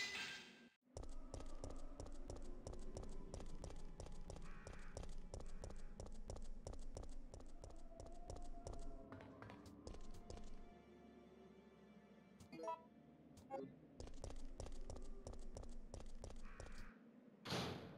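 Footsteps run quickly on hard pavement.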